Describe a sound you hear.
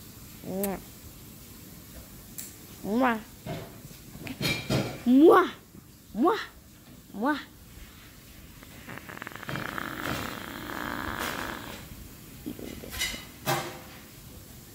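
A young boy talks in a lively way, close to the microphone.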